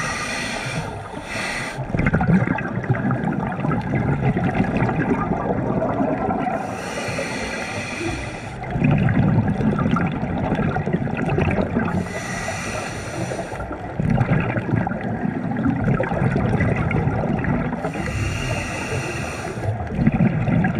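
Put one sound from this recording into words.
A diver breathes in through a regulator with a rushing hiss every few seconds.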